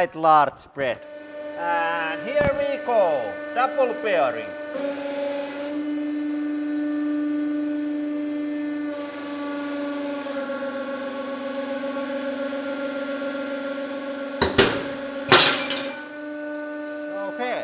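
A hydraulic press hums and whines steadily.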